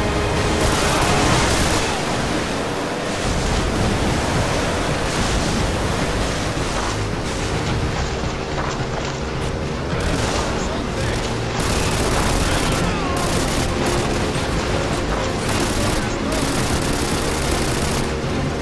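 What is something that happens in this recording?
A boat engine roars steadily.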